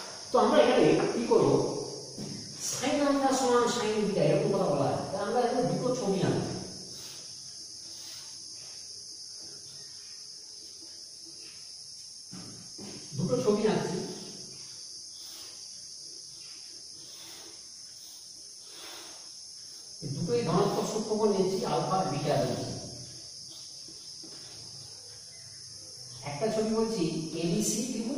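A man speaks calmly and clearly, with pauses.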